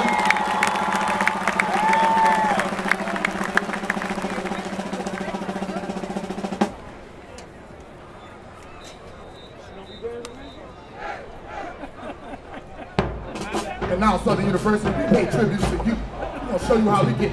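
A marching band plays loud brass and drums outdoors.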